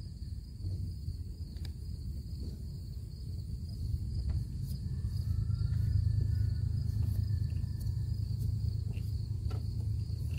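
A hand lightly taps and rubs a plastic mower deck.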